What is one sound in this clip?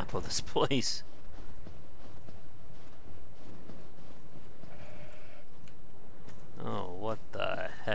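Armoured footsteps crunch on snow.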